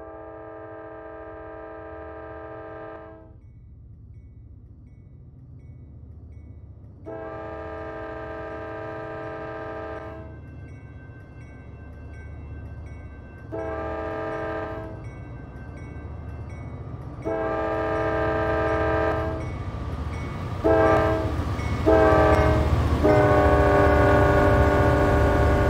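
A train horn blows in long and short blasts, growing louder as the train nears.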